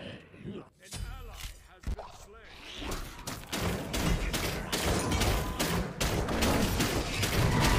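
Game combat effects clash and crackle loudly in quick bursts.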